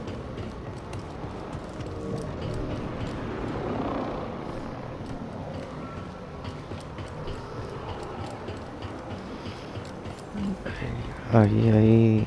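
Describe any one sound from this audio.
Footsteps run quickly over metal grating.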